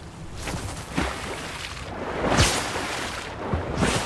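Water splashes underfoot with each step.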